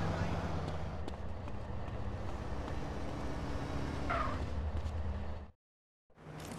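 A man's running footsteps slap on pavement.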